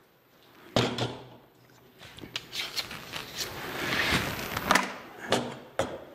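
A blade scrapes and rasps against wood.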